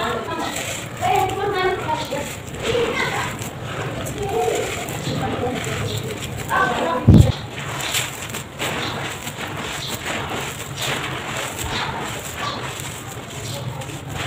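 Hands scoop and rake through loose dirt with a rough scraping.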